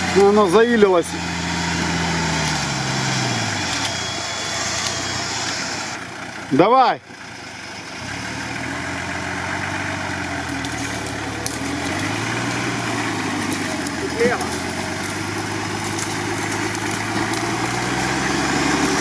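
An off-road vehicle's engine rumbles and revs as it crawls through mud.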